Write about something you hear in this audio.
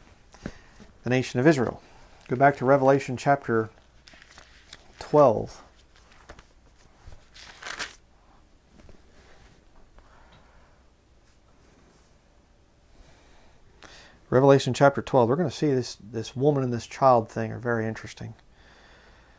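A man speaks calmly and close by, pausing now and then.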